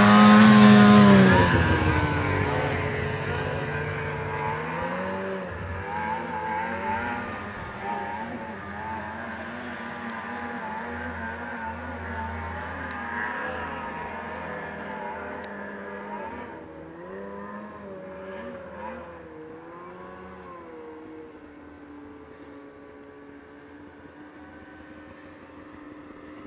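A snowmobile engine drones and revs unevenly, loud at first and fading into the distance.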